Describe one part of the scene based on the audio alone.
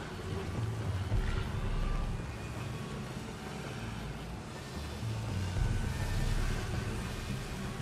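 Footsteps shuffle on hard ground.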